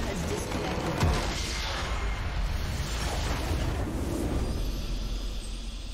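A large crystal shatters with a booming crash in a video game.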